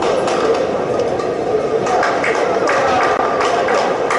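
A shuttlecock is struck sharply by rackets.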